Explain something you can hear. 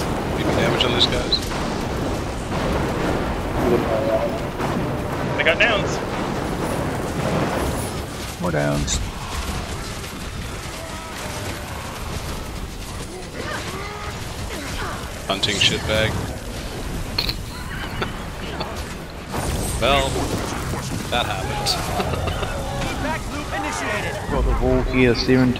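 Spell effects crackle and boom in a fast game battle.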